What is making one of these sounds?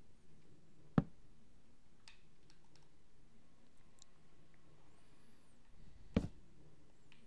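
A short click sounds as a block is placed.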